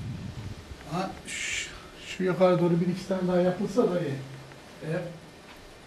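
A man speaks nearby in a calm voice.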